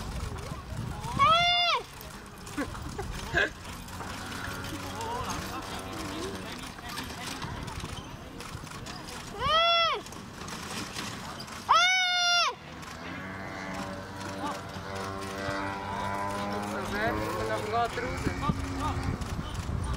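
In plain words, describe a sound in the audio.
Carriage wheels rumble over the ground.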